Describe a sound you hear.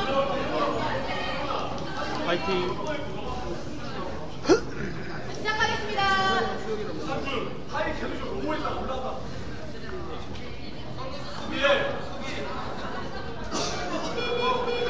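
Several young people talk and call out in a large echoing hall.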